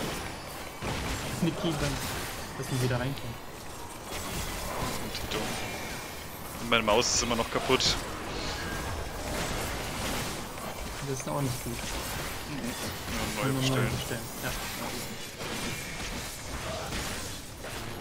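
Magical spell effects whoosh and crackle in a battle.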